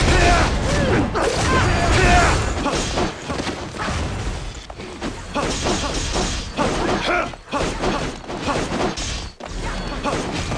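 Magic blasts whoosh and boom in quick bursts.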